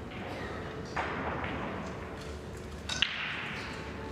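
Pool balls click sharply against each other.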